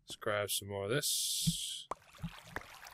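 Water pours out of a bucket with a short splash.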